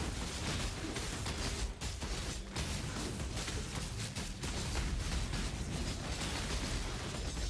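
Fiery spells burst and crackle in rapid succession.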